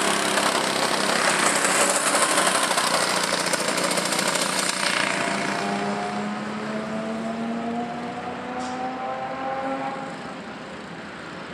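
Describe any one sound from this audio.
A go-kart engine buzzes loudly nearby, then fades into the distance.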